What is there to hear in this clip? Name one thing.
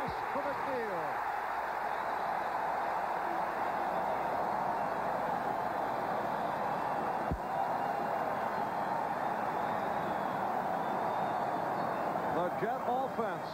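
A large stadium crowd roars and cheers loudly, then slowly fades.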